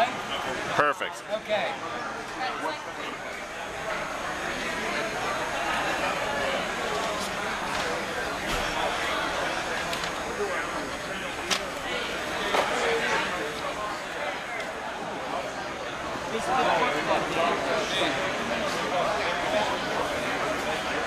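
A crowd murmurs and chatters in a large indoor hall.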